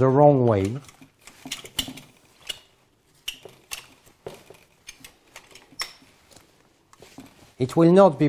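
A rope device clicks and rattles as it is handled.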